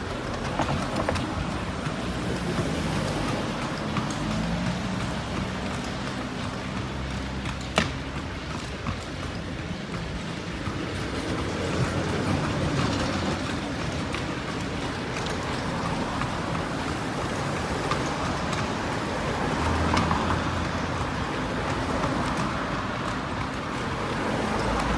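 A vehicle rumbles steadily along a street, heard from on board.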